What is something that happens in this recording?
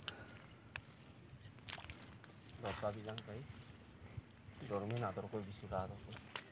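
Fish wriggle and rustle against wet grass.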